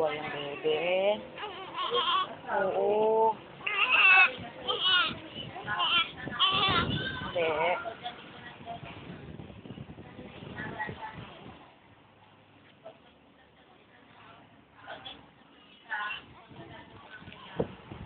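A newborn baby cries loudly up close, then whimpers and quiets.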